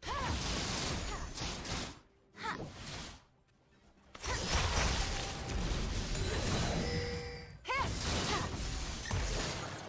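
Magic spells burst and crackle during a fight in a video game.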